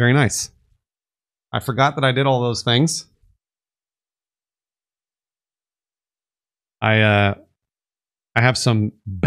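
A man talks in short bursts, close to a microphone, with pauses between.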